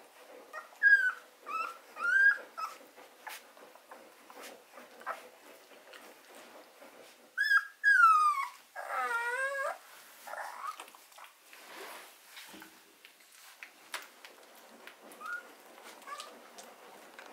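Newborn puppies whimper and squeak in high, short cries.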